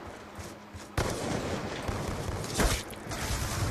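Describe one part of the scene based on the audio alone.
Gunshots bang in a video game.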